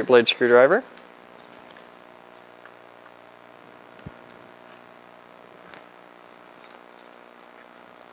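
A small tool clicks and scrapes against hard plastic.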